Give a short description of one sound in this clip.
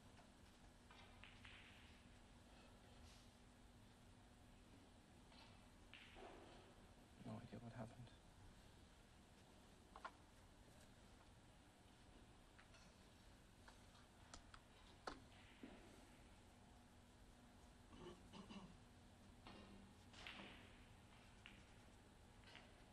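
Snooker balls click against each other on the table.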